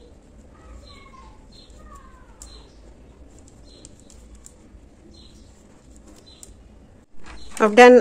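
A crochet hook softly clicks and rubs against yarn.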